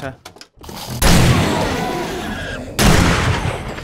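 A gun fires at close range.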